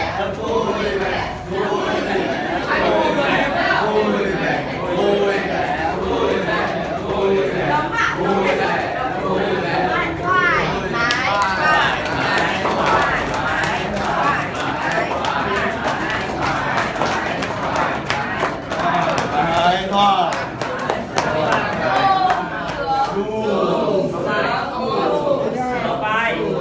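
A group of men and women sing and chatter together nearby.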